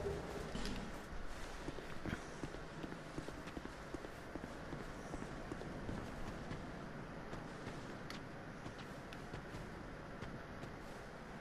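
Footsteps thud quickly on grass and stone.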